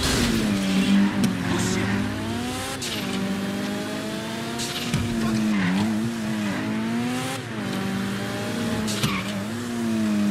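A car engine revs up and down as it speeds along.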